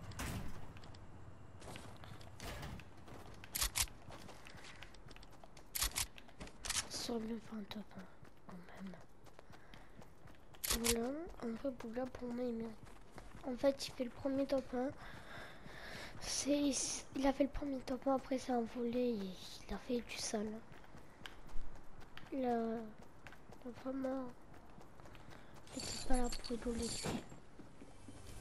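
Quick footsteps patter over the ground.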